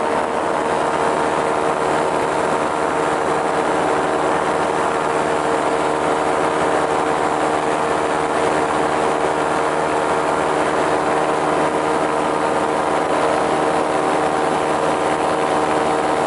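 Wind rushes loudly past, high up in the open air.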